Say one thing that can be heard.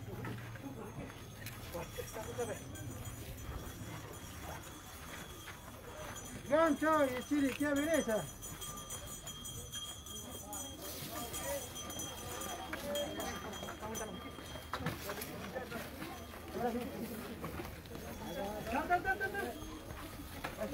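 Several men and women talk quietly nearby, outdoors.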